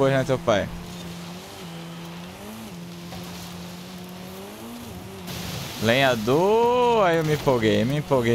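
A car engine roars at high revs, rising and falling in pitch as the gears change.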